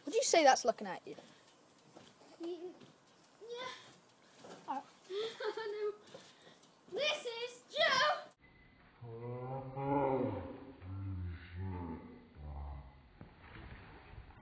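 A trampoline creaks and thumps as a boy bounces on it.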